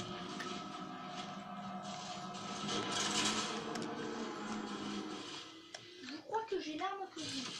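Gunfire and explosions from a video game play through a television loudspeaker.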